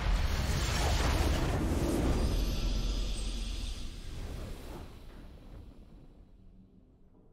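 A triumphant victory fanfare swells and fades away.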